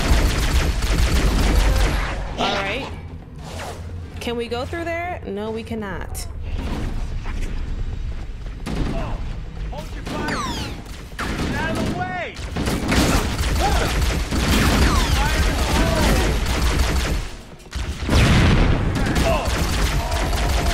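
Energy weapon shots fire in quick bursts.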